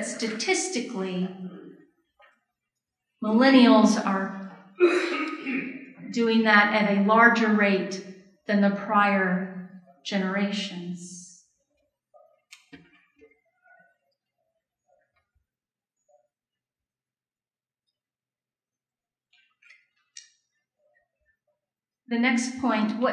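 A middle-aged woman speaks with animation into a microphone, heard through a loudspeaker.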